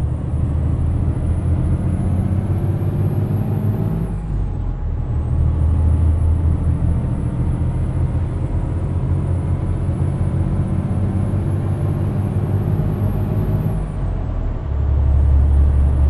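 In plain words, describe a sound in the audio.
A truck engine hums steadily, rising and falling as it changes gear.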